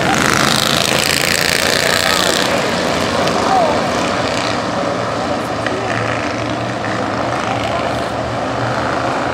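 A pack of race car engines roars loudly outdoors.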